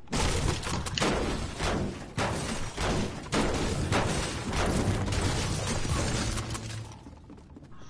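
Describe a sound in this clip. A pickaxe strikes a wooden wall.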